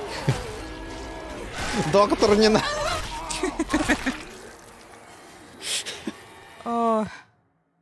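A man groans in pain.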